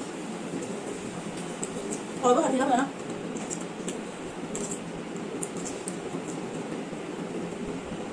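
Food crunches softly as young women chew.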